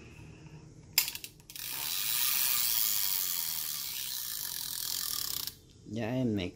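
A fishing reel whirs as its handle is cranked fast.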